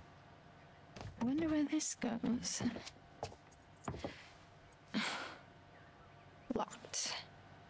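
A young woman speaks quietly to herself.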